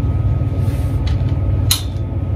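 Clothes hangers clatter on a metal rail.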